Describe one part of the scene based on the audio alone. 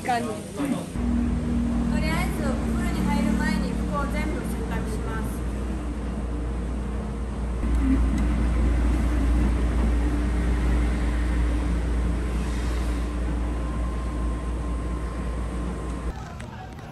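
Washing machines hum steadily.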